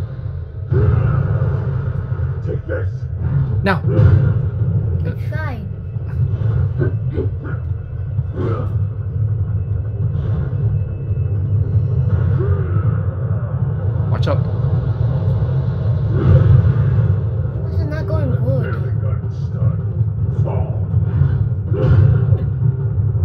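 A young man talks with animation, close to a microphone.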